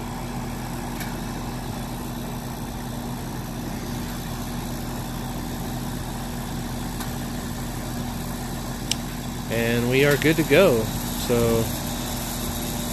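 An outdoor air conditioning unit hums steadily.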